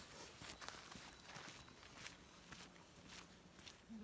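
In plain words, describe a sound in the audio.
Footsteps tread on a dirt road.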